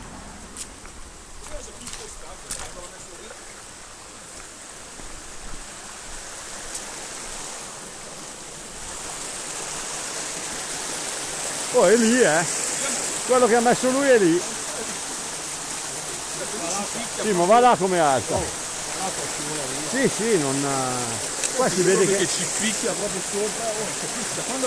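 A shallow stream rushes and splashes over rocks.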